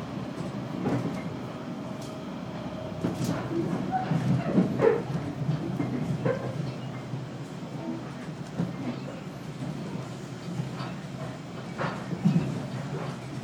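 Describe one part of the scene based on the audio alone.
Train wheels clatter and knock on the rails.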